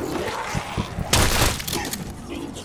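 An electric weapon crackles and zaps in short bursts.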